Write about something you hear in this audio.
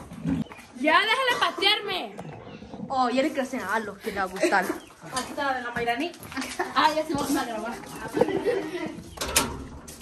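A teenage boy talks with animation close by.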